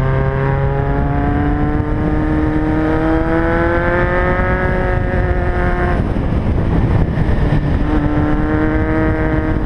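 A motorcycle engine hums steadily, its pitch rising and falling with the throttle.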